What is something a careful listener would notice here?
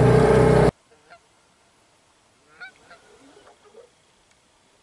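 Geese honk overhead in the distance.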